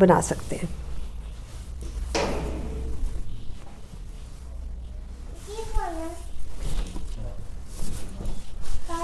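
Fabric rustles and swishes as it is unfolded.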